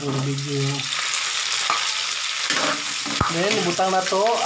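Food sizzles loudly as it drops into hot oil.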